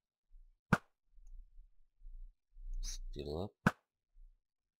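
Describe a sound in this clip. An arrow is shot with a sharp snap.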